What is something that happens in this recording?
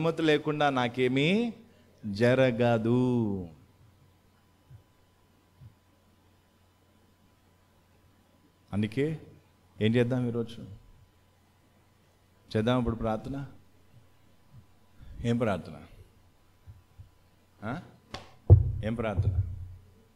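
A man speaks steadily into a microphone, in short phrases with pauses.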